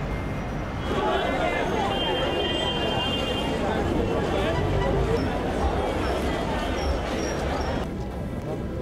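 A crowd chatters and bustles nearby.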